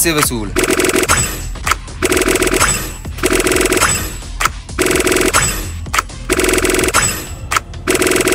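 Bright electronic reward chimes ring out in repeated short bursts.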